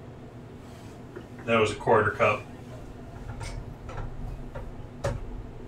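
A whisk scrapes and clinks against a metal pan.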